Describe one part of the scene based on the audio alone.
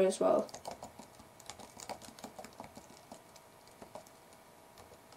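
Keys click quickly on a keyboard.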